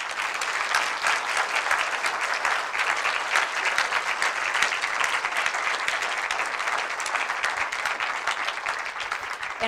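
A woman speaks calmly to an audience.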